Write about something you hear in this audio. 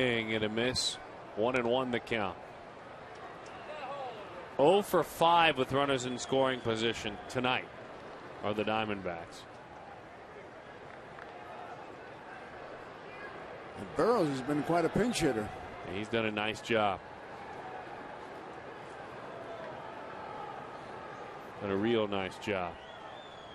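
A large crowd murmurs faintly in an open stadium.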